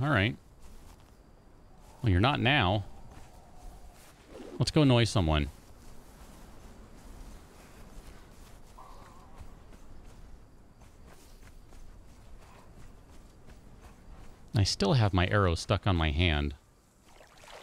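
A young man speaks casually into a nearby microphone.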